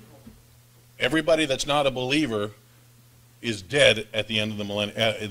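A middle-aged man preaches with animation through a microphone in a large room.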